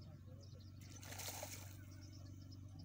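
Water splashes briefly close by.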